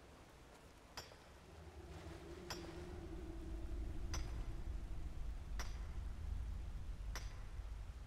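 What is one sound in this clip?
A pickaxe strikes rock with sharp metallic clinks.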